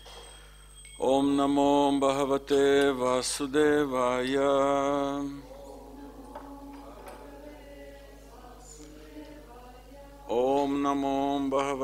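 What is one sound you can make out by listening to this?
A middle-aged man chants in a loud, held voice into a microphone.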